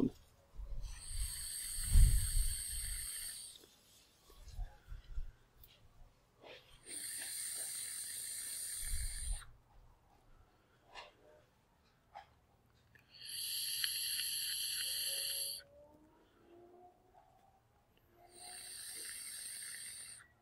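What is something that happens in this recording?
An electronic cigarette hisses and crackles as a man draws on it.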